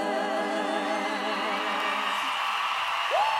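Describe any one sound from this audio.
A young woman sings with vibrato through a microphone over loudspeakers.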